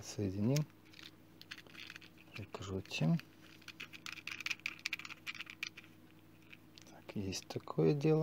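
A plastic adapter clicks and scrapes as a plug is pushed into it.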